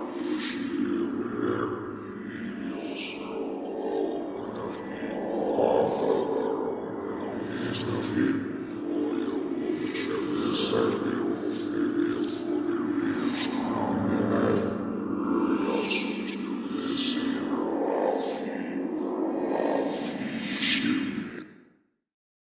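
A monstrous creature growls and snarls, deep and rasping, close by.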